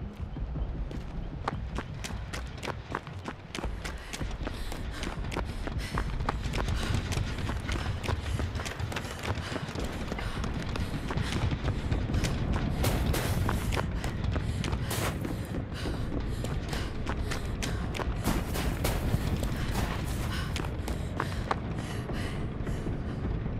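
Footsteps run quickly over grass, stone and floors.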